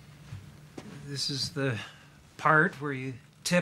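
A young man speaks with animation nearby.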